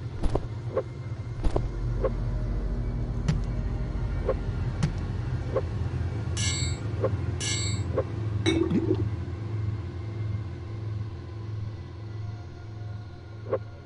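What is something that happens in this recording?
Short clicks and clunks sound as items are picked up and set down.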